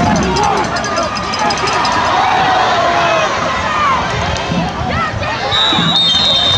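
A large crowd cheers and shouts in an open-air stadium.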